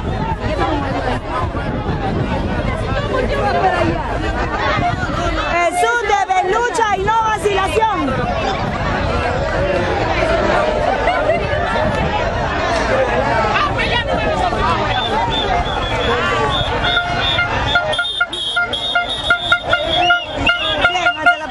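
A crowd of men and women talks and calls out loudly outdoors.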